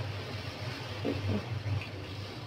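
Water splashes as it is poured into a hot pan.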